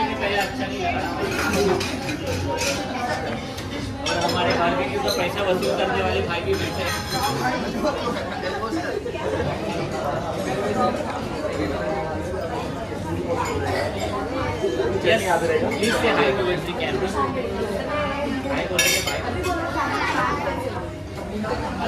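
Young people chatter and laugh at close range.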